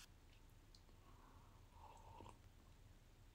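A young woman sips a drink from a cup.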